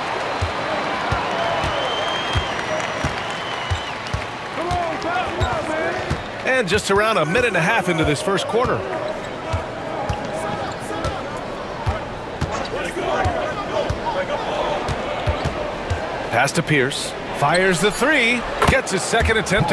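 A basketball bounces on a hardwood floor in a steady rhythm.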